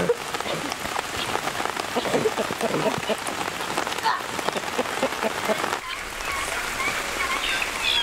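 Leafy branches rustle and shake.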